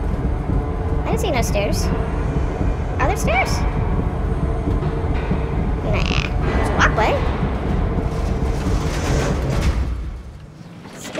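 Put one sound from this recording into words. An elevator rumbles loudly as it rides.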